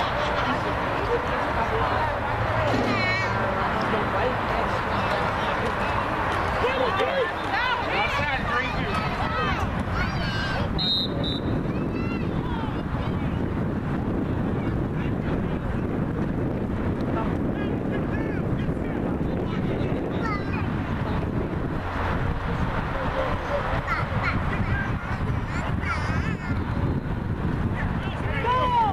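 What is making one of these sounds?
Young players shout on the field.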